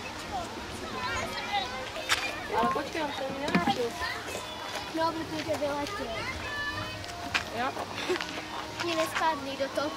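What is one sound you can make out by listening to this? A young girl talks and squeals excitedly nearby.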